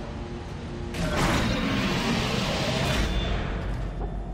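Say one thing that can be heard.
A heavy metal door slides open with a loud hiss and clank.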